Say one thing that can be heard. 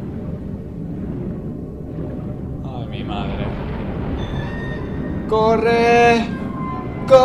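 Water rumbles in a low, muffled underwater wash.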